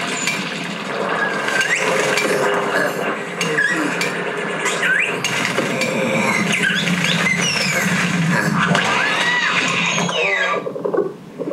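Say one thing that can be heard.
Birds chirp and twitter.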